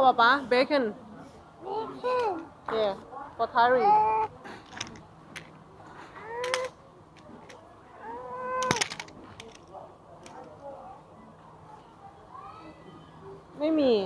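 A young child talks and squeals excitedly close by.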